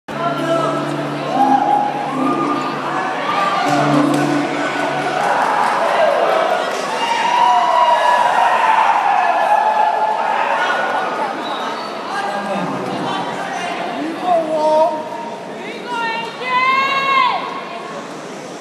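A small band plays music through loudspeakers in a large echoing hall.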